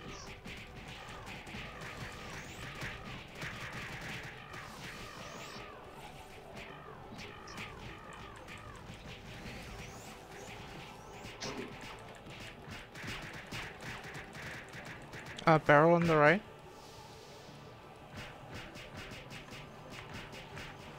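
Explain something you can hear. Game spell effects and hits crackle and clang rapidly.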